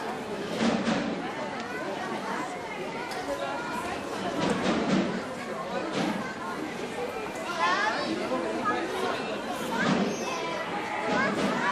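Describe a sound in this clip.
A crowd of men and women chatter all around, close by.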